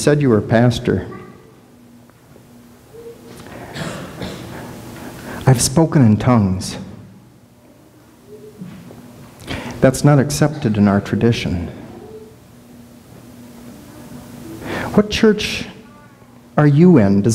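A middle-aged man speaks calmly to an audience in a large echoing room.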